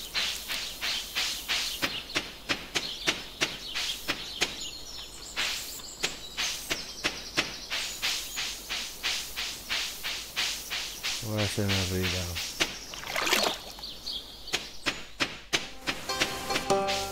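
Quick footsteps patter steadily on grass and dirt.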